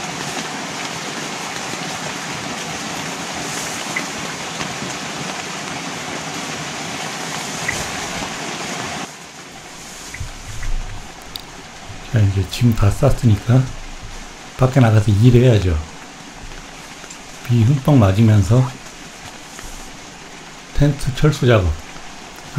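A nylon backpack rustles as it is shifted about.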